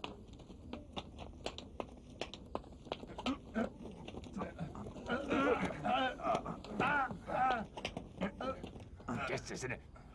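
A horse's hooves clop on the ground.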